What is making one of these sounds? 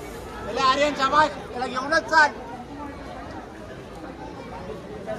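A large crowd cheers and murmurs outdoors.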